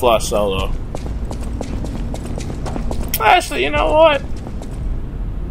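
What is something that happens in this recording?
Footsteps hurry across a hard stone floor in a large echoing hall.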